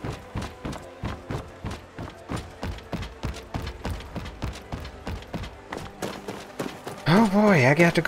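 Footsteps thud steadily on wooden boards and stone.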